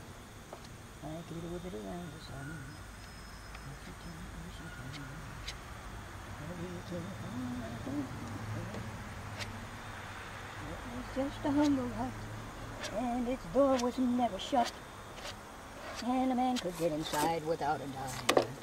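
An elderly man talks close by.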